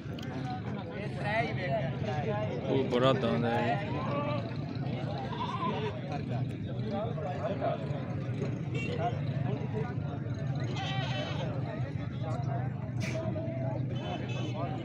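A crowd of men chatter nearby outdoors.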